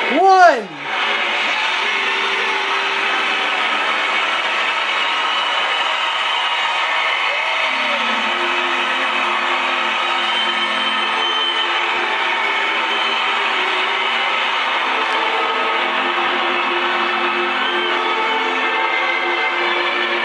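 A large crowd cheers and roars through a television loudspeaker.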